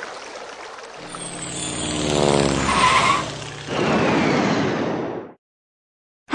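A toy car whooshes in and comes to a stop.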